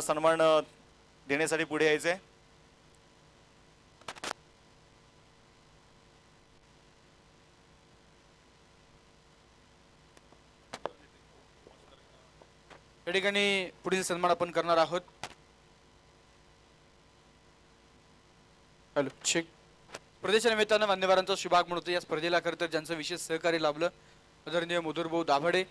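A man speaks loudly and with animation over a loudspeaker, echoing in a large open space.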